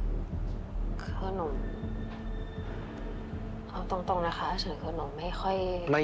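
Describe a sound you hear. A young woman speaks quietly.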